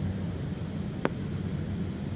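A cricket bat strikes a ball with a sharp crack.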